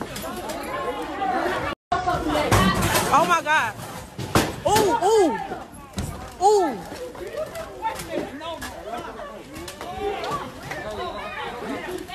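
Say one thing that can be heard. A crowd of men and women shout and scream nearby.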